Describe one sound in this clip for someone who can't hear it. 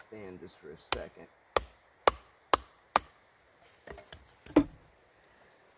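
A wooden baton knocks sharply against a knife blade, splitting wood.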